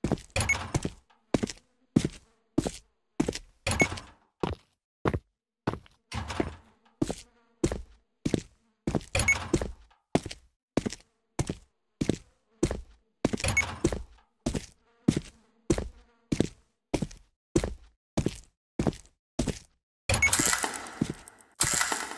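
Footsteps tap steadily on a hard floor in an echoing corridor.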